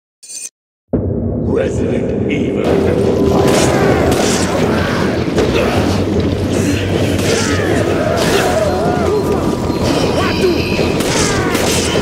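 Loud video game fighting sounds play without a break.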